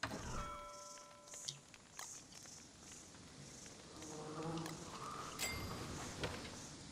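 Short soft clicks sound as items are picked in a menu.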